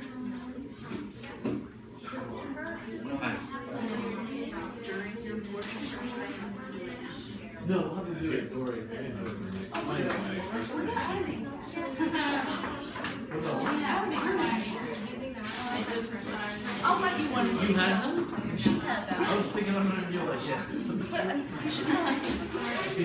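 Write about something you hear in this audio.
A woman speaks clearly to a group.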